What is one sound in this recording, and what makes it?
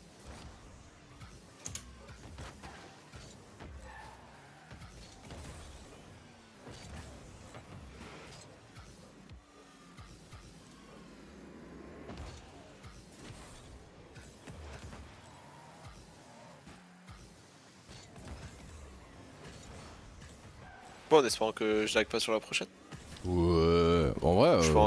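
Game car engines hum and boost.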